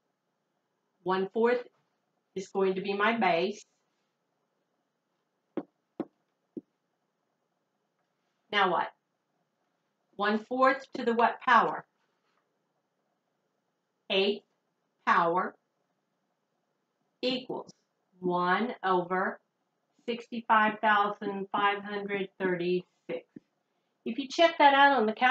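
An elderly woman speaks calmly and clearly up close, in short phrases with pauses, as if explaining.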